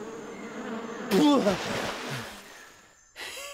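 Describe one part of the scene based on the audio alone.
A man shouts in pain.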